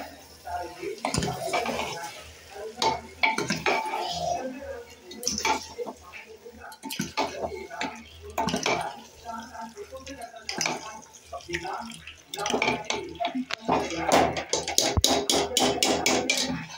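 A metal ladle clinks and scrapes against an aluminium pressure cooker.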